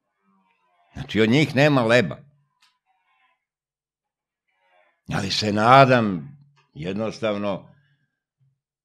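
An elderly man speaks calmly and close into a microphone, in short phrases with pauses.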